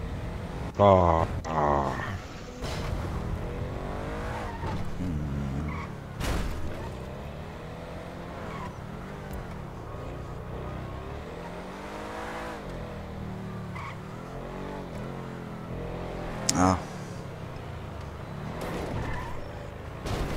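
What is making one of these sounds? A car engine revs and hums as the car drives along.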